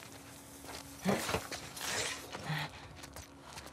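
Someone clambers through a window with a soft thud.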